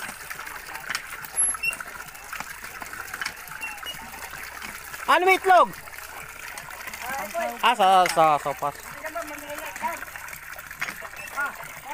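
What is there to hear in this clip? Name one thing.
Hands splash and rub in a basin of water.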